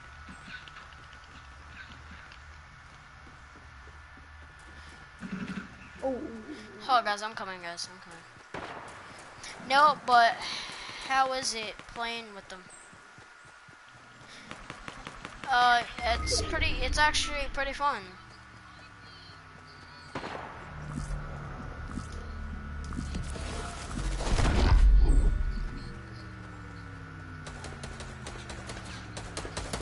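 Footsteps patter quickly over grass and wooden floors.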